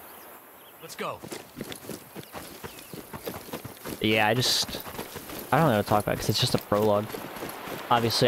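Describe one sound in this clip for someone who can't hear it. Footsteps crunch through dry grass and brush.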